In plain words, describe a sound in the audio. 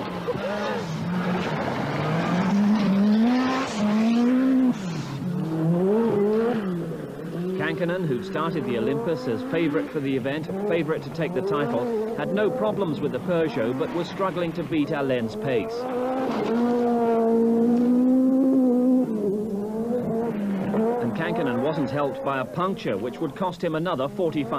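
Gravel crunches and sprays under a rally car's tyres.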